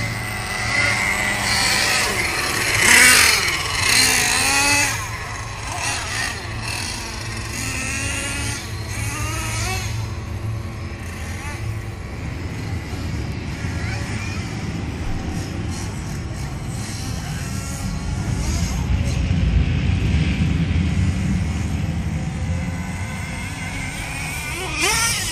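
Tyres skid and scrabble on loose dirt.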